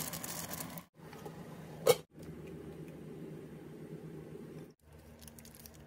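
A sauce simmers and bubbles in a pan.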